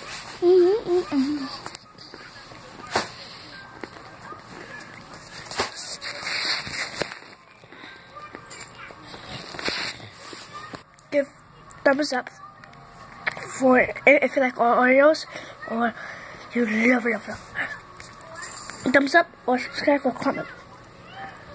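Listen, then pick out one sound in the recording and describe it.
A young girl talks softly and sleepily close by.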